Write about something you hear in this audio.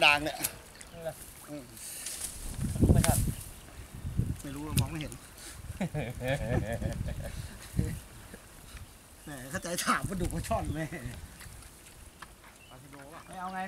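Water splashes as men wade through it.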